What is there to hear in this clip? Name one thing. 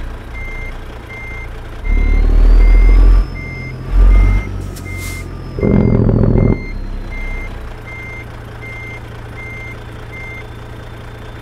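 A truck's reversing alarm beeps at a steady pace.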